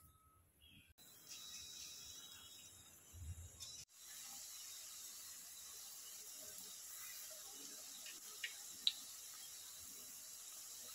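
Hot oil sizzles and crackles steadily as food fries.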